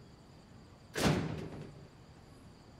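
A heavy metal gate slams shut with a loud bang.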